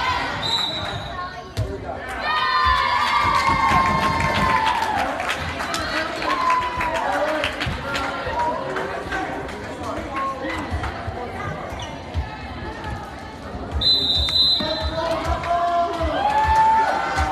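A volleyball is hit with sharp smacks.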